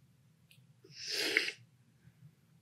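A man slurps loudly from a spoon.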